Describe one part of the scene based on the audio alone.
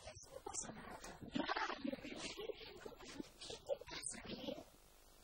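A young woman speaks warmly and laughs close by.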